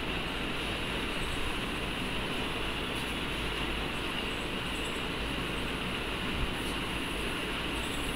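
A cloth duster rubs across a chalkboard.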